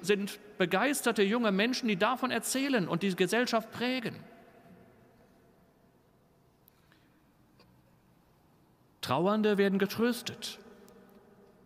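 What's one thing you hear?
A middle-aged man speaks with emphasis into a microphone in a large echoing hall.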